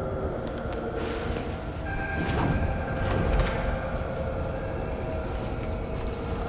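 Footsteps run across a creaking wooden floor.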